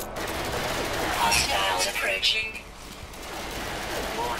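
A laser weapon fires with a buzzing whine.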